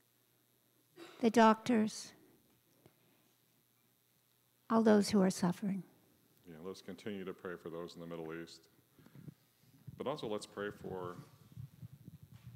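An older man speaks calmly through a microphone in a large, echoing room, pausing between phrases.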